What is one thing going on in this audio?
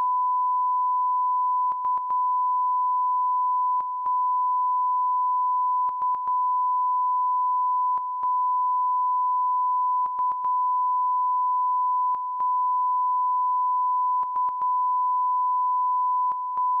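A steady high test tone sounds, broken by short gaps.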